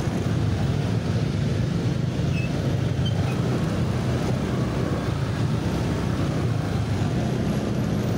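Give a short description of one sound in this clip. Heavy traffic hums all around outdoors.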